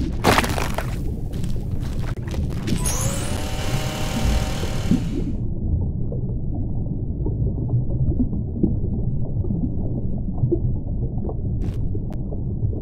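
A deep underwater rumble churns steadily.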